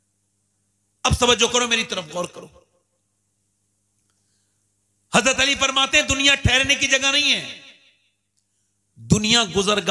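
A man speaks with emphasis into a microphone, heard through loudspeakers, in bursts with pauses.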